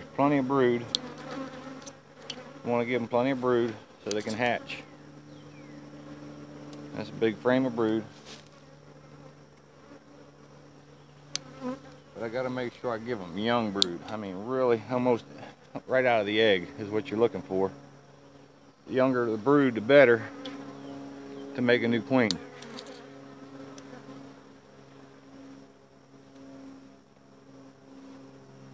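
Bees buzz steadily all around.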